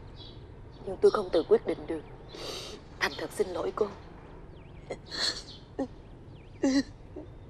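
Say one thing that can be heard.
A middle-aged woman sobs and cries.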